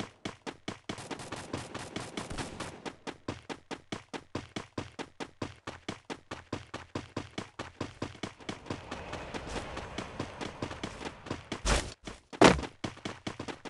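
Footsteps thud quickly and evenly on grass.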